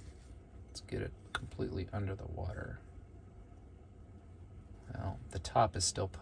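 Metal nails tap lightly against a glass bowl.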